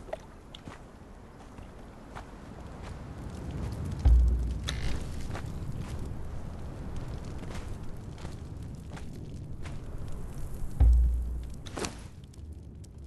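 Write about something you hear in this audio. Footsteps tread on stone.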